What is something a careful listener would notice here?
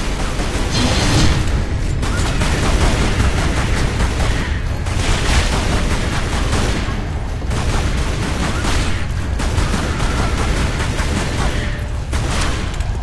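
Pistols fire rapid shots.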